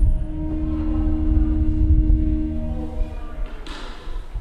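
A pipe organ plays a loud, deep chord that breaks off and rings out through a large echoing hall.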